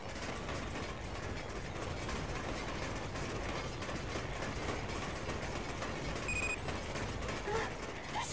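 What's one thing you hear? Footsteps run quickly across hard ground.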